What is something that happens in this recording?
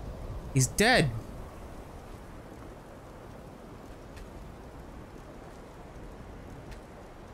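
Magic flames crackle softly and steadily.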